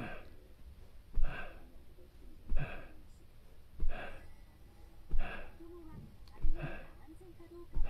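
A young man exhales hard in a steady, repeating rhythm close by.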